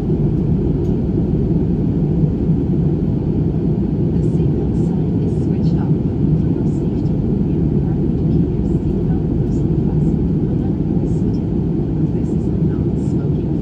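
A jet airliner's engines roar steadily in flight, heard from inside the cabin.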